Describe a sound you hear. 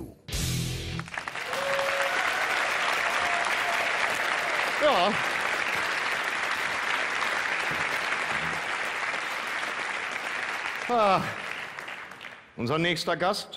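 A large audience applauds and cheers in a big hall.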